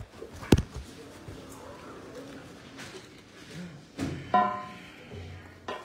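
Fabric rustles and brushes close by.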